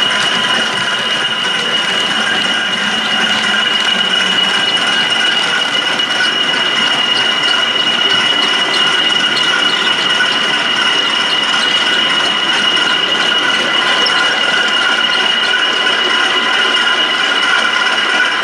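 A model train motor hums and whines steadily as a train rolls past.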